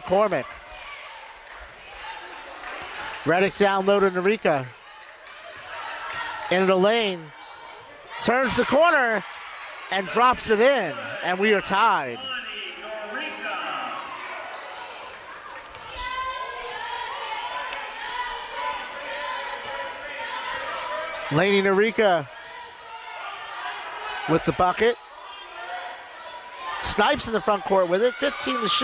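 A crowd of spectators murmurs and cheers.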